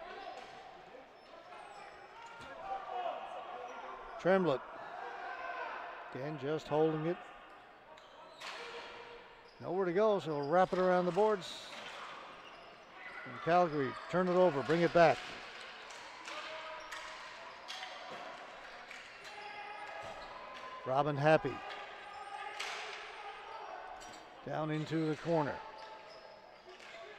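Players shout loudly in a large echoing arena.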